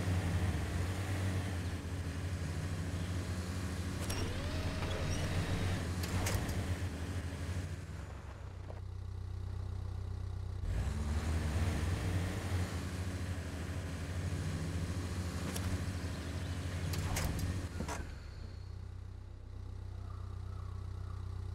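An off-road truck engine rumbles and strains as it climbs over rocks.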